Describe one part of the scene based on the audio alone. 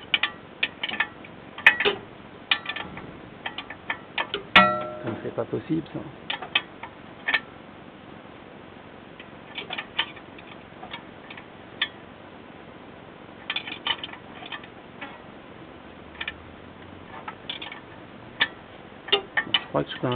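A thin metal tool taps and scrapes against a wheel rim, close by.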